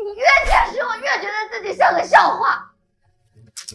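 A young woman speaks tearfully and close by.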